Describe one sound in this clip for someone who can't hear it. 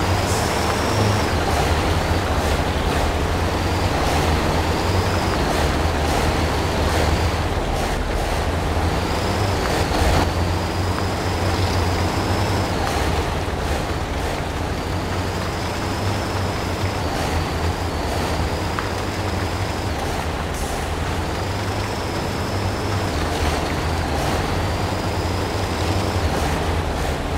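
Tyres squelch through mud.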